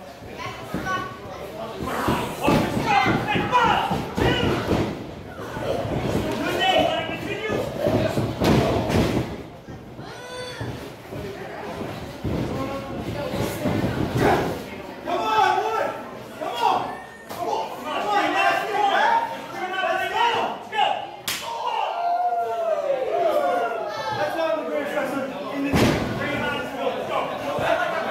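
A wrestler's body slams onto the ring mat with a loud thud.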